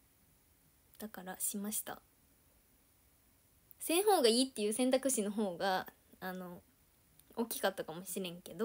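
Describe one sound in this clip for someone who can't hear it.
A young woman speaks close to the microphone in a bright, lively voice.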